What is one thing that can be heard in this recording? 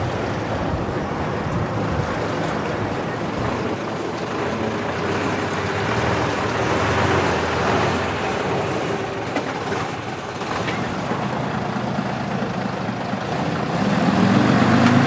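An old lorry engine rumbles at low speed.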